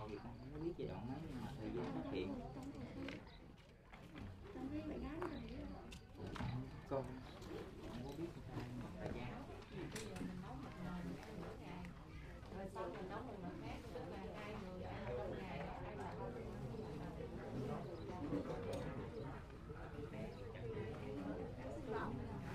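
Several adults talk in a low murmur nearby, outdoors.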